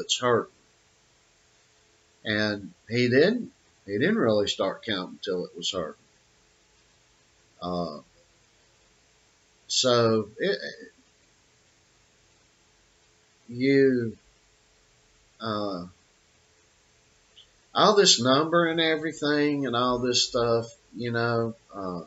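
An elderly man speaks calmly and close to the microphone, with pauses.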